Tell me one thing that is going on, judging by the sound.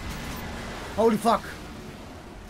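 A young man exclaims loudly into a microphone.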